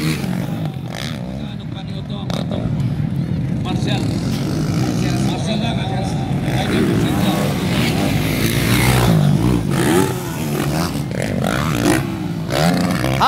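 Dirt bike engines roar and rev loudly.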